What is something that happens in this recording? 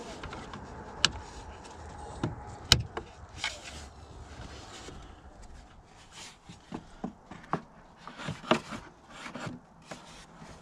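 A plastic engine cover clicks and knocks as hands handle it.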